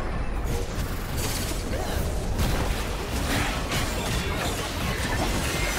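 Weapons clash and strike in quick hits.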